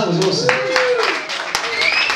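A young man sings into a microphone nearby.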